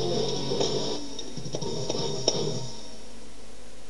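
Plastic buttons on a toy guitar controller click and clack.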